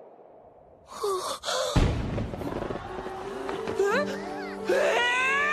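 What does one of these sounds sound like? A young boy shouts in shock.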